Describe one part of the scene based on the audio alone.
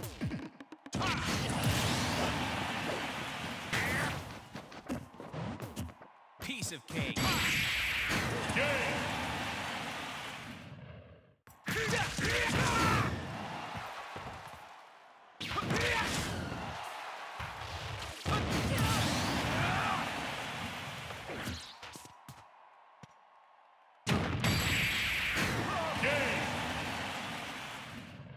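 A game crowd cheers and roars loudly.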